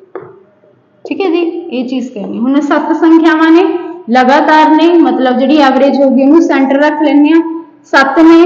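A young woman speaks clearly and calmly, close to the microphone.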